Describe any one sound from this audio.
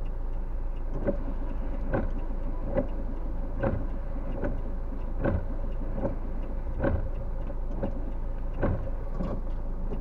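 A windshield wiper sweeps across a windshield.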